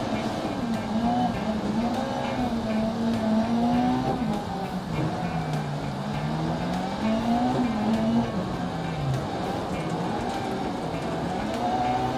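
A racing car engine roars, its pitch rising and falling as the car shifts gears.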